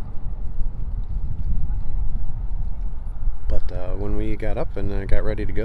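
Wind gusts and rumbles across open water.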